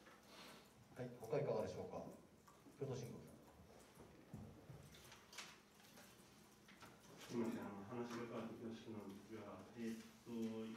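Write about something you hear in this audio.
A middle-aged man speaks calmly into microphones.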